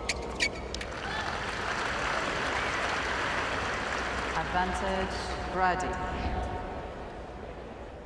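A large stadium crowd applauds and cheers.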